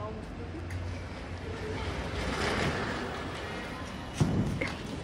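A firework fuse sputters and hisses.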